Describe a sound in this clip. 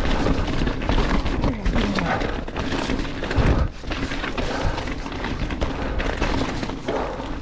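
A bicycle's chain and frame rattle over bumps.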